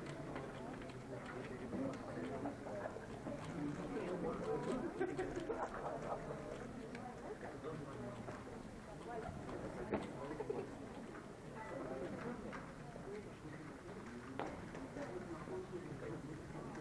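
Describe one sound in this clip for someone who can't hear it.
Young men talk quietly in a large echoing hall.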